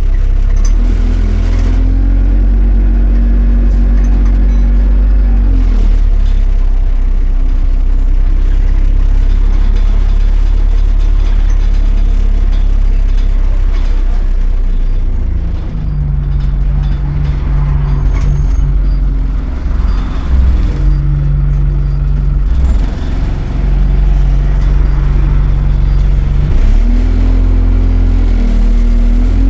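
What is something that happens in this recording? A bus rattles and creaks as it drives along.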